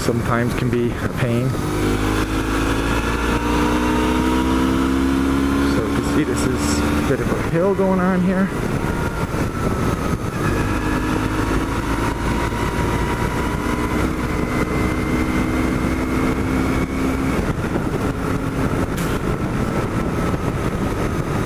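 A motorcycle engine hums and changes pitch as it shifts gears.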